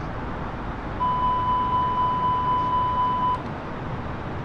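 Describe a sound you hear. A cockpit warning alarm beeps rapidly over and over, then stops.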